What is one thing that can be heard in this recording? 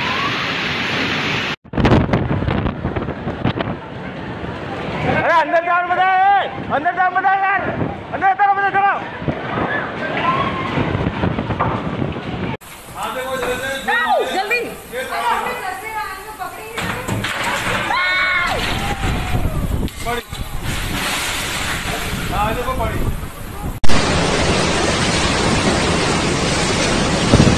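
Heavy rain lashes down.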